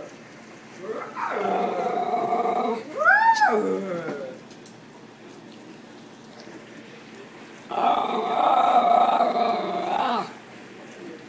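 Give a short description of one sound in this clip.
A small dog howls and yowls loudly nearby.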